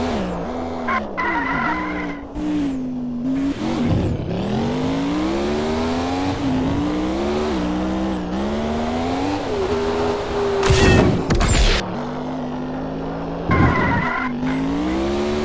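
Tyres screech in short bursts.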